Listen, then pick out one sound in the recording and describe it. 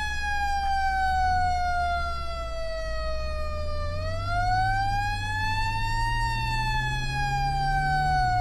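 A siren wails, slowly falling and rising in pitch.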